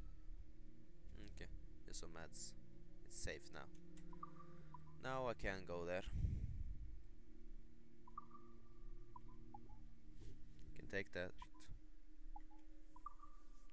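Menu chimes and soft clicks sound now and then.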